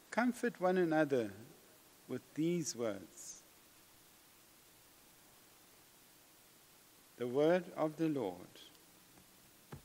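A middle-aged man speaks calmly and slowly into a microphone, with pauses.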